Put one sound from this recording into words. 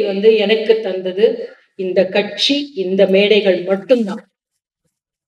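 A woman speaks with animation into a microphone, heard through a loudspeaker.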